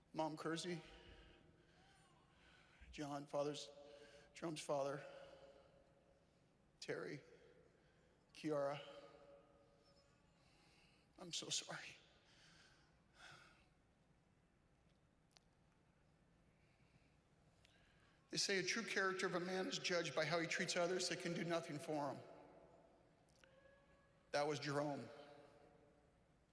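A man speaks slowly and with feeling into a microphone, with pauses, in a large echoing hall.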